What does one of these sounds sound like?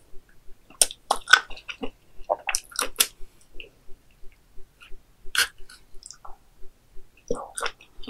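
A young woman chews and slurps food loudly, close to a microphone.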